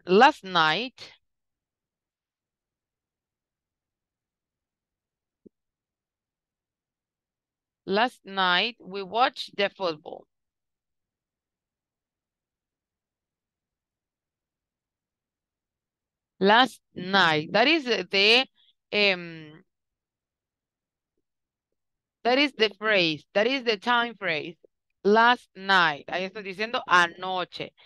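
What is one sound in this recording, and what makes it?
A woman speaks calmly through an online call, dictating in bursts.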